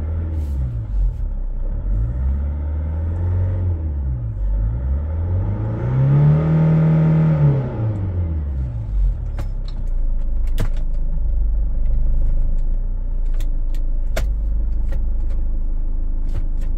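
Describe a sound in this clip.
A car engine idles and revs up high before settling back to a steady idle.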